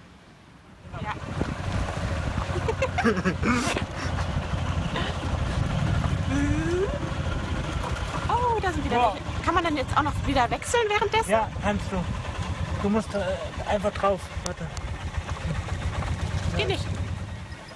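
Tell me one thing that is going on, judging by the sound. A young woman talks and laughs with animation close to the microphone.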